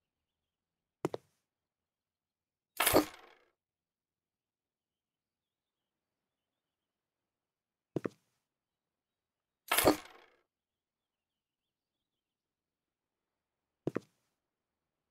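Short game interface sounds swoosh now and then.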